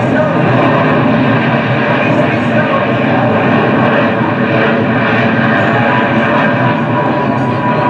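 A jet engine roars steadily overhead.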